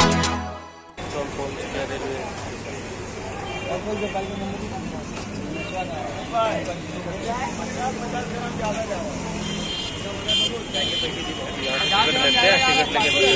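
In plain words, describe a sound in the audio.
Busy street noise with traffic hums outdoors.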